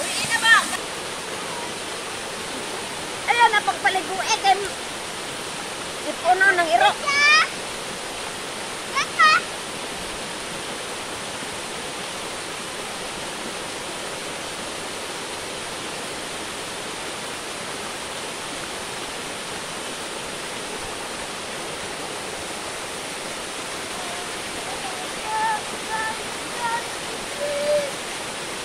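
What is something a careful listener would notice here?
A waterfall splashes steadily into a pool outdoors.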